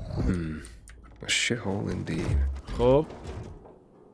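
A metal case clicks open.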